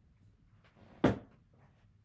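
Dice rattle and bounce across a table.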